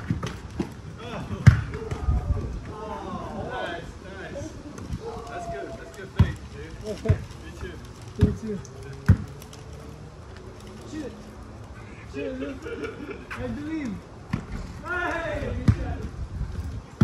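Young men talk and call out during play.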